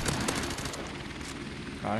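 A suppressed rifle fires a few quick muffled shots.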